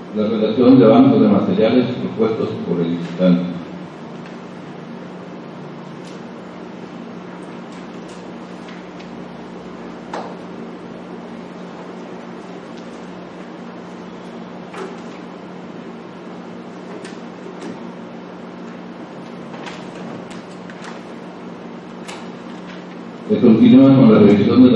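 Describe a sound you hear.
A man speaks calmly in a room.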